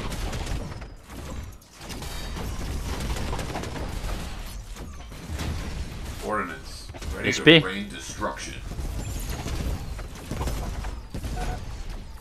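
Electronic guns fire in rapid bursts.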